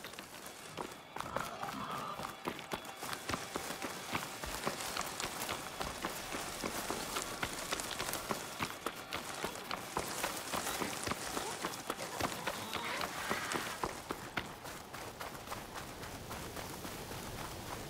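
Footsteps crunch quickly over rough ground and gravel.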